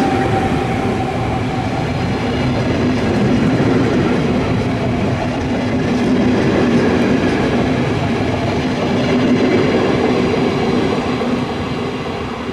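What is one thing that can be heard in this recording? Train wheels clatter over the rail joints.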